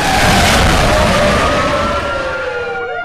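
A car crashes with a loud burst of noise.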